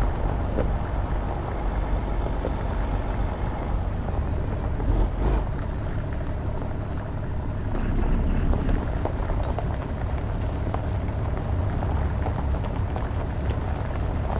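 A trailer rattles and clanks over bumps.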